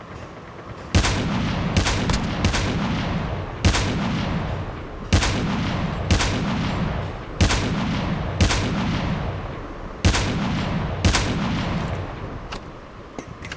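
Rifle shots boom loudly again and again, each with a rumbling echo.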